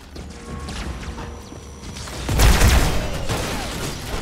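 Energy weapon shots fire in quick bursts.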